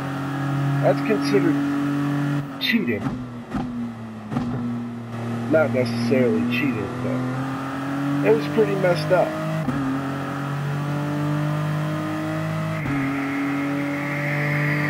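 A prototype race car's engine drones at speed.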